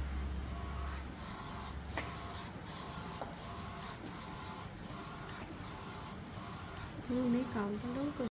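A printer's print head whirs back and forth in a quick, even rhythm.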